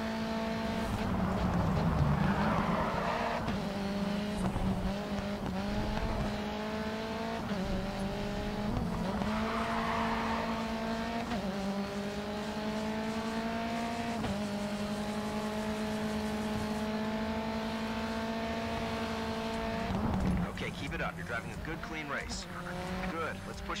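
Tyres screech as a car slides through a corner.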